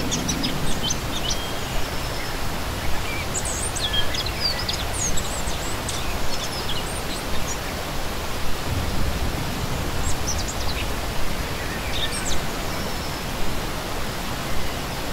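A shallow stream rushes and splashes steadily over rocks.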